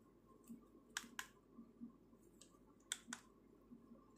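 Buttons on a radio click as they are pressed.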